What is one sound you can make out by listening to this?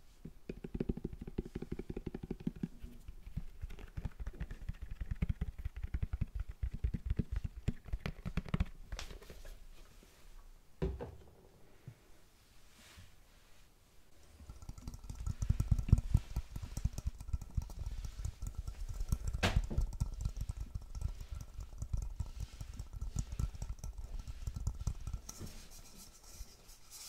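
Water splashes and sloshes in a sink.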